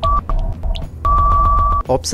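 A timer alarm sounds a steady beep at the end.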